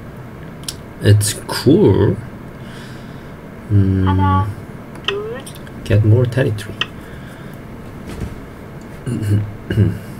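A young man talks calmly, close to a microphone.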